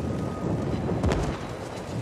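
A bomb explodes with a sharp blast.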